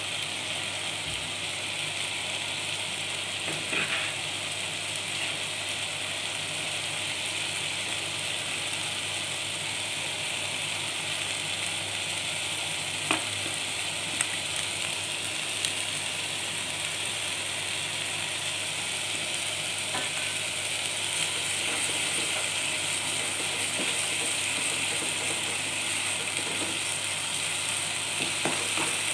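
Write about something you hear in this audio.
A thick sauce bubbles and sizzles steadily in a pan.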